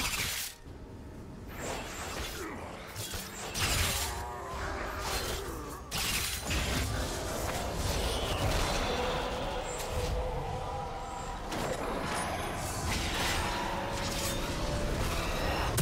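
Magic blasts and weapon hits crackle and thump in a video game battle.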